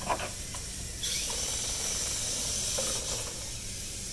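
A robot's motors whir as it drives forward.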